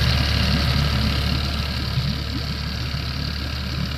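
A waterfall roars in the distance.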